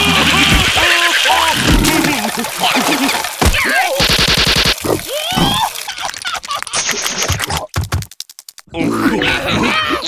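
Cartoon creatures laugh in high voices.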